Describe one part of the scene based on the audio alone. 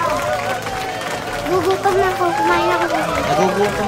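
A young boy talks cheerfully close by.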